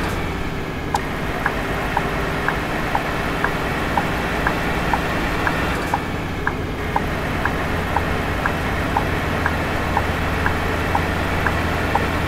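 A turn signal ticks in an even, rapid rhythm.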